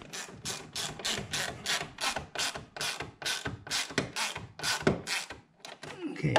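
A tool clicks rapidly as a fastener is turned.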